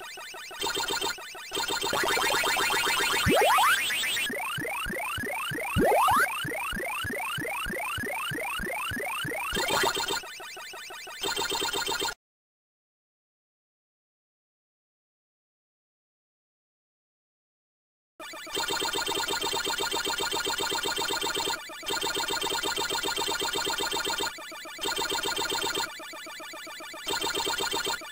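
An arcade video game's electronic siren wails in a steady loop.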